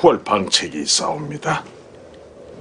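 A man speaks in a low, strained voice.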